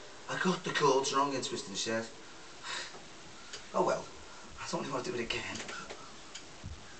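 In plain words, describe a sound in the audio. A middle-aged man talks casually into a nearby microphone.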